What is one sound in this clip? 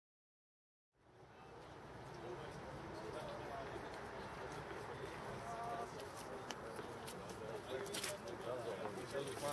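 Another young man answers calmly nearby.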